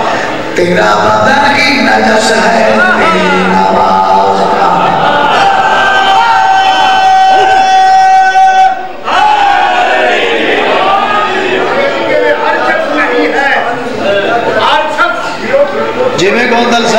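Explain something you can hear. A man recites loudly in a drawn-out, singing voice through a microphone, with a short pause midway.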